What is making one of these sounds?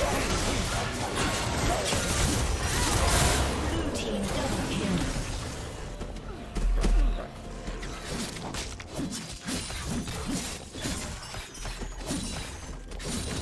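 Spell effects and weapon blows clash rapidly in a game fight.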